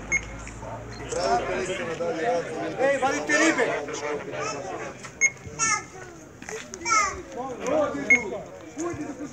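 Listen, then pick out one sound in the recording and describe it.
Several men talk nearby, close to the microphone.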